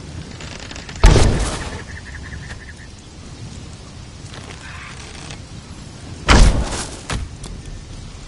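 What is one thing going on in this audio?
A bow shoots an arrow with a sharp thump.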